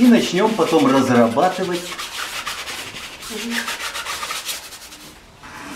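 A brush scrubs and rasps across canvas.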